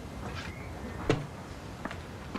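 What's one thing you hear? A door clatters open.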